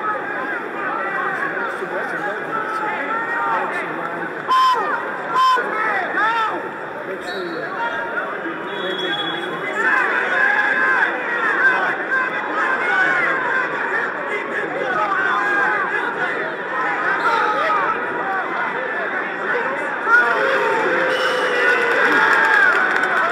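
A large crowd murmurs and cheers throughout in an echoing arena.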